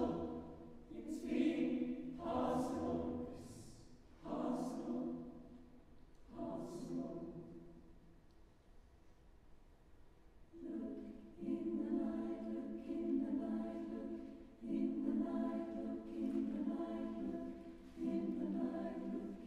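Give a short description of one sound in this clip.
A mixed choir sings in phrases that swell and fade in a large echoing hall.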